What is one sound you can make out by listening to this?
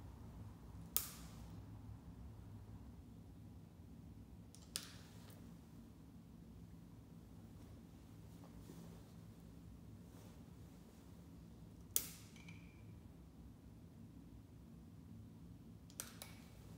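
A lighter clicks several times.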